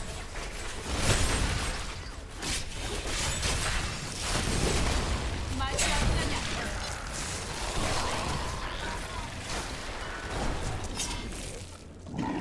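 Fiery blasts roar and boom.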